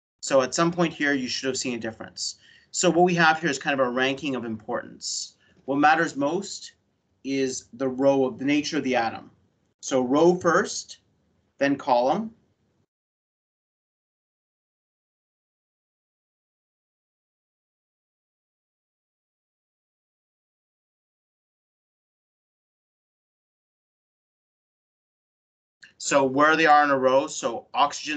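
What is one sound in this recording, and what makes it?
A man explains calmly over an online call, with long pauses.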